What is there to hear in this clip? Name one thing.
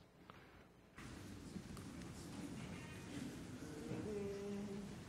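A crowd murmurs and shuffles in a large hall.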